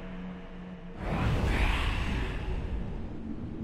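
A deep magical whoosh swells up and fades.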